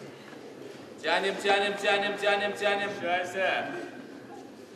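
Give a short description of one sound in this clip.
Men in the audience shout loud encouragement.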